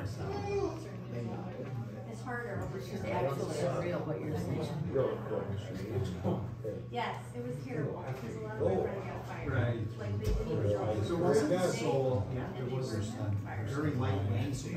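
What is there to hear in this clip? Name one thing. Several men and women talk at once nearby.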